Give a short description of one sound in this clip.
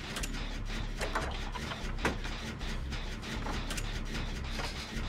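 Metal parts clink and rattle as a machine is worked on by hand.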